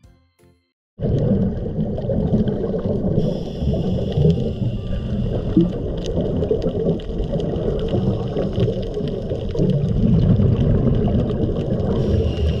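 Scuba bubbles gurgle and rumble underwater.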